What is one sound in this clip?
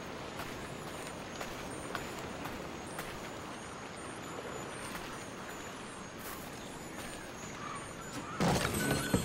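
Footsteps crunch on sand at a steady walking pace.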